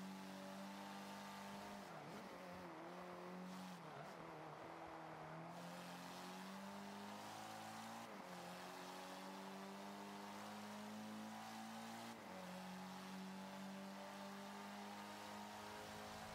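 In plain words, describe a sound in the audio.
A car engine roars steadily, dropping briefly at each gear change.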